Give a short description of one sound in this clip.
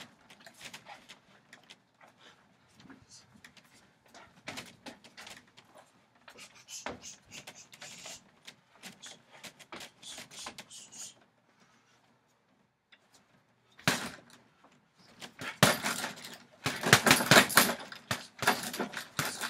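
Bare feet shuffle and thump on a wooden deck.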